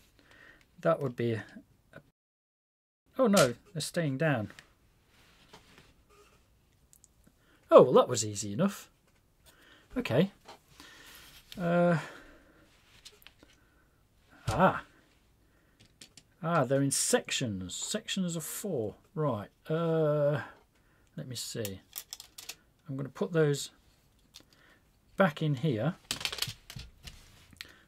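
Hard plastic parts click and clatter as they are handled and fitted together.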